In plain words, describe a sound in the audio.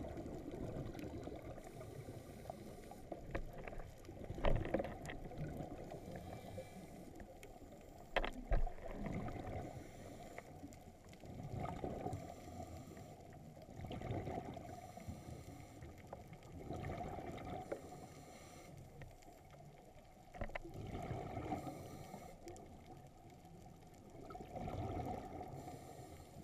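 Air bubbles from a diver's breathing gurgle and rumble underwater in regular bursts.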